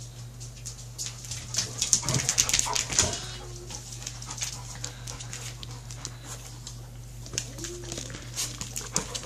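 Dog claws click and patter on a wooden floor.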